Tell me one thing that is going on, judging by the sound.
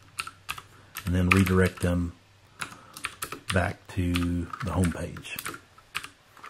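An elderly man speaks calmly and briefly, close to a microphone.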